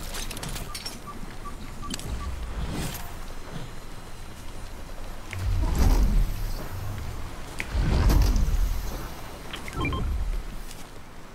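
Quick footsteps rustle through grass.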